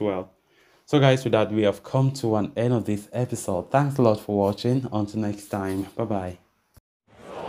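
A man speaks steadily and clearly, close to a microphone.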